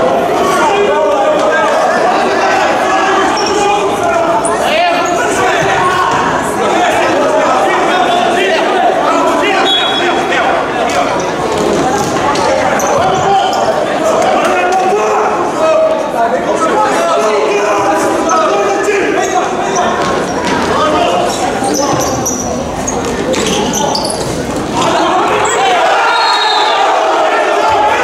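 Players' shoes squeak on the court.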